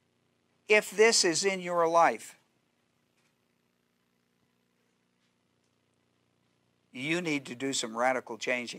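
An older man speaks with emphasis into a microphone, pausing between phrases.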